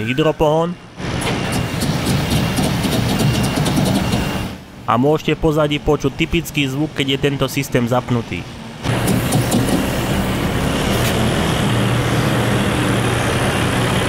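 A truck engine rumbles steadily as the truck drives slowly.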